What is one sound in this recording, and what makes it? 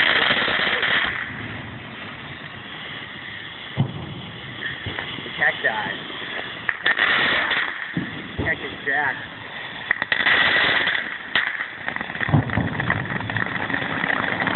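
Fireworks spray sparks with a loud fizzing hiss and crackle.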